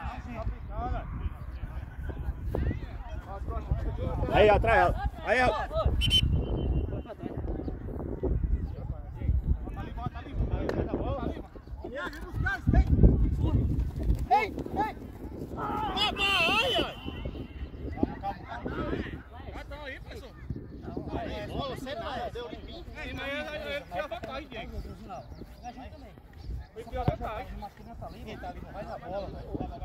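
Men shout and call out across an open playing field.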